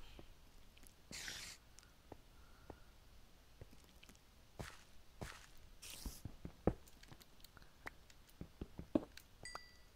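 A pickaxe taps and chips at stone blocks again and again.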